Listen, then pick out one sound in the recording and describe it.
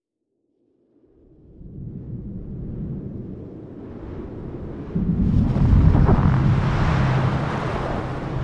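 A strong wind howls and roars, building steadily louder.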